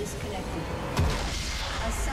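A tower crumbles with a heavy crash.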